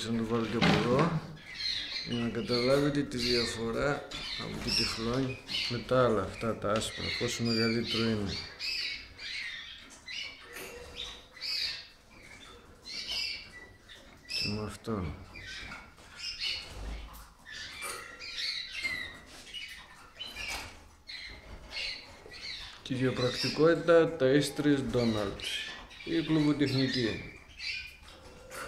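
Caged canaries chirp and trill close by.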